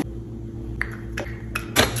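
A spray bottle hisses in quick squirts.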